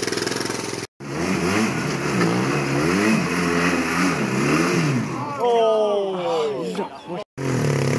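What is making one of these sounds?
A motorcycle sidecar outfit approaches, its engine revving up and down.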